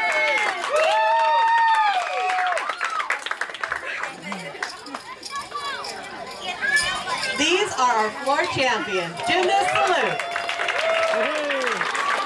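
A crowd of girls cheers and squeals loudly.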